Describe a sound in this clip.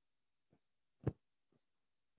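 Chalk taps once against a board.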